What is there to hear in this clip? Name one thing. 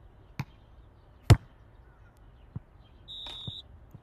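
A ball is kicked with a hard thud.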